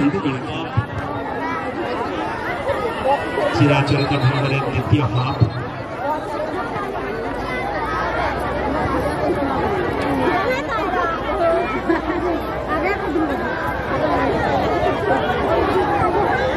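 A large outdoor crowd chatters and cheers loudly all around.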